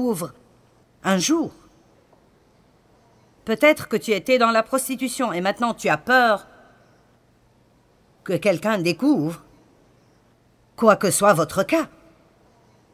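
A middle-aged woman speaks calmly and expressively through a microphone, with pauses.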